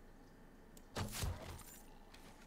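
A heavy blow lands with a dull thud.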